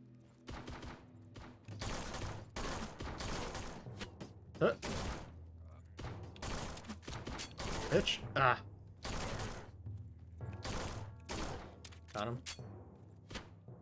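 A pistol fires in sharp, repeated shots.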